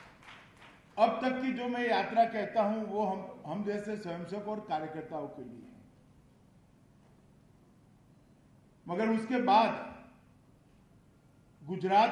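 A middle-aged man speaks calmly into a microphone, heard through loudspeakers, pausing between phrases.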